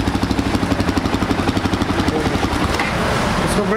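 A motorcycle engine idles with a rapid, throbbing beat.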